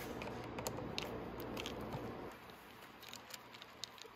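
A screwdriver scrapes and clicks against a metal bolt.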